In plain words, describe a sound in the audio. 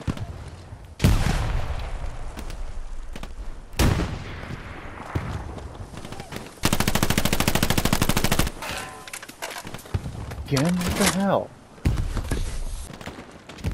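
Explosions boom nearby with heavy rumbling.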